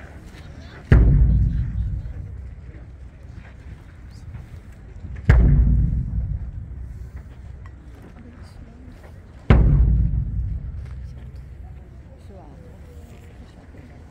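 A large drum booms in slow, single strikes that ring out.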